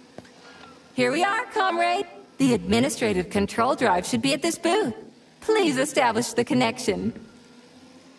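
A man speaks calmly in a robotic, processed voice.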